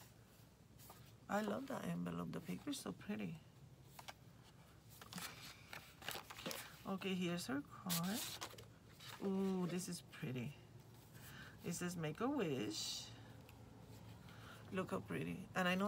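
Paper rustles and flaps as cards are handled.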